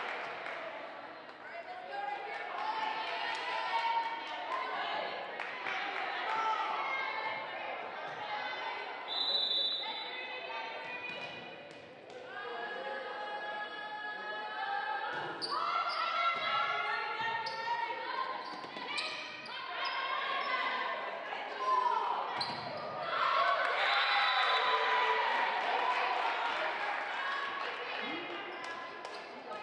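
A crowd in an echoing gym cheers and shouts.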